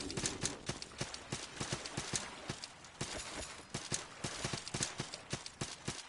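Quick footsteps patter steadily on stone.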